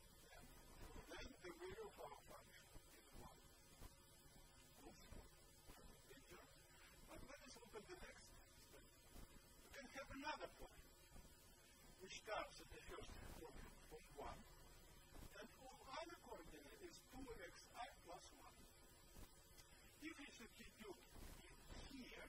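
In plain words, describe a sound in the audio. An elderly man lectures calmly through a microphone, with pauses.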